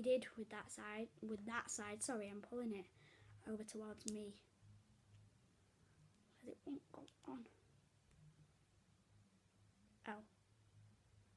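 A young girl talks calmly close by.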